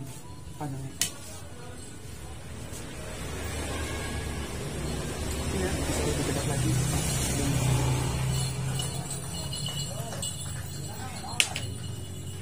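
Small metal parts click against a glass counter.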